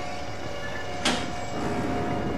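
A metal locker door slams shut with a clang.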